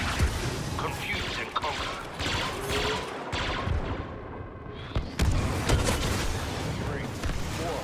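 A jetpack roars in bursts.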